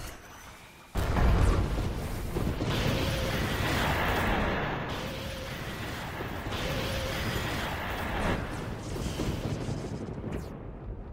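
Lightning strikes crackle loudly.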